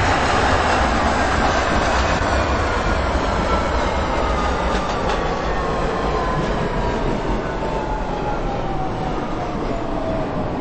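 A train's motors whine, falling steadily in pitch as the train slows.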